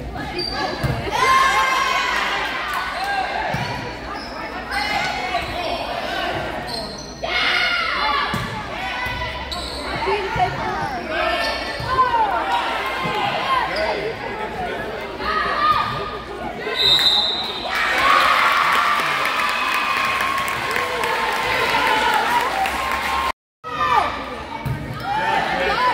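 A volleyball is struck by hand in a large echoing gym.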